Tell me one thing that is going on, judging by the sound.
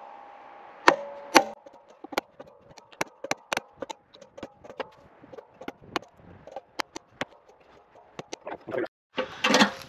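A wooden mallet taps sharply on a chisel.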